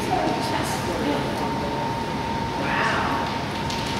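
A woman calls out a command to a dog in a large echoing hall.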